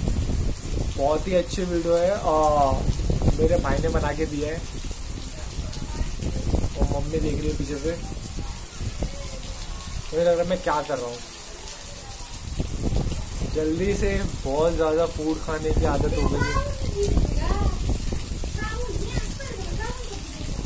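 A young man sings close by.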